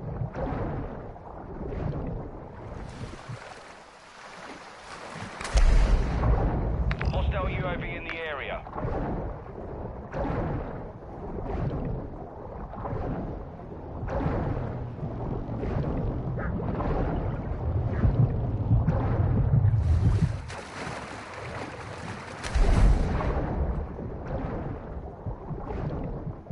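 Water gurgles and swishes as a swimmer strokes underwater.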